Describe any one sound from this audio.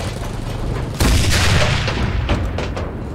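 A loud explosion booms and echoes away.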